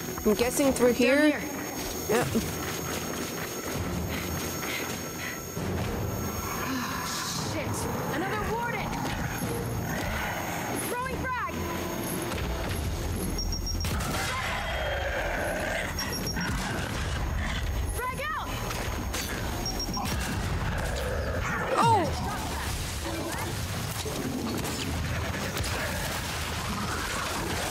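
A young woman talks into a microphone close by, with animation.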